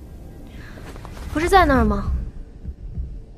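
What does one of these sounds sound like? A young woman asks a question calmly.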